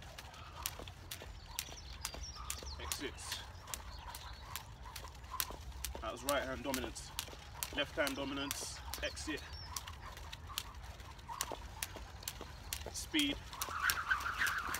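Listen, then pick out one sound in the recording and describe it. A jump rope slaps rhythmically on wet pavement.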